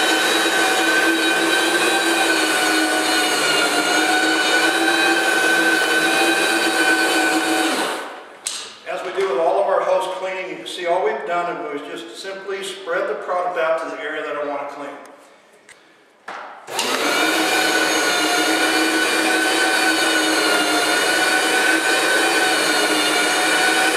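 A floor cleaning machine hums steadily and loudly.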